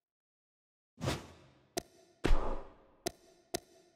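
Soft whooshes sweep as a game menu switches.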